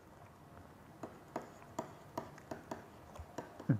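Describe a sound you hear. A pen taps and scratches on a hard writing surface.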